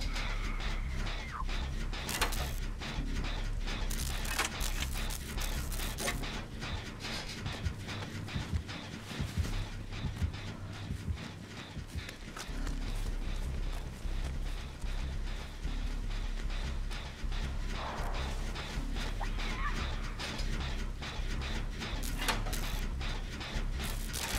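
A generator engine rattles and clanks while being repaired.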